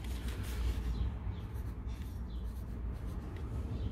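A marker squeaks faintly as it writes on a paper label.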